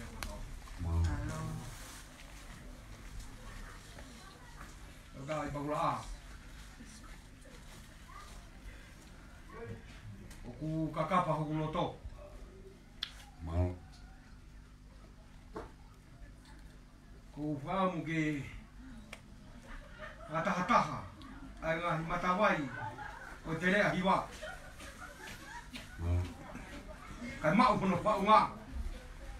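A man speaks calmly in short bursts nearby.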